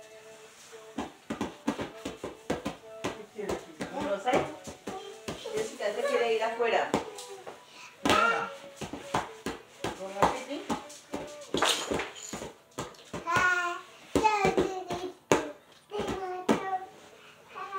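Hands pat and slap on a hard tiled floor.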